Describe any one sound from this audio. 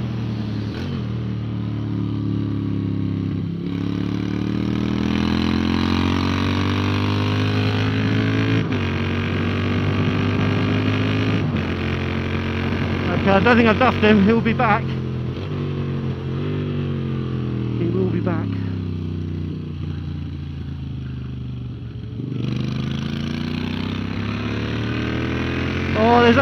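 A motorcycle engine roars close by, its pitch rising and falling with gear changes.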